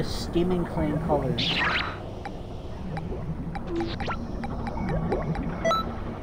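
Short electronic menu blips tick as a selection moves.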